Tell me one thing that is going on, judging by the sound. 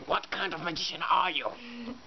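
A young man speaks loudly and roughly, very close.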